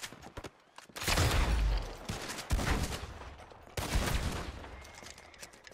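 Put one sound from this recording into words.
Gunshots blast one after another and echo between buildings.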